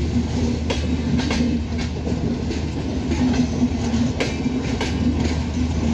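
A passenger train rumbles past on the tracks.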